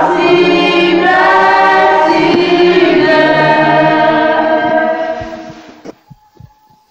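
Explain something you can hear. A choir sings loudly together nearby.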